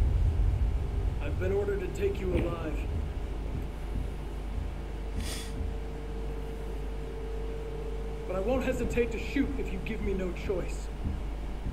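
A young man speaks in a calm, firm voice.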